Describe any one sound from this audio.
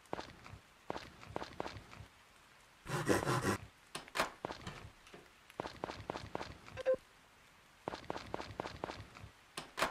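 Footsteps patter lightly across a wooden floor.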